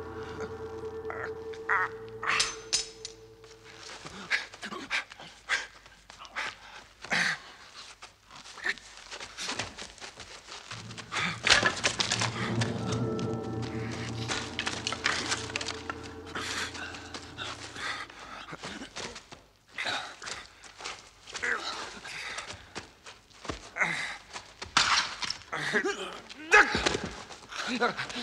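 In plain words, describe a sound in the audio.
Two men grunt and strain as they wrestle.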